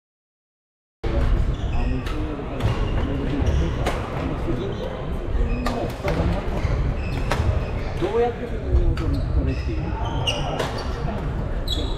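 Shuttlecocks are struck with sharp pops of badminton rackets in a large echoing hall.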